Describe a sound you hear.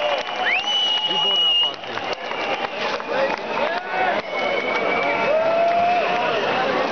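A large crowd cheers and whistles loudly in a big echoing arena.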